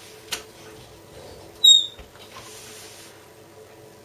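An oven door swings shut with a thud.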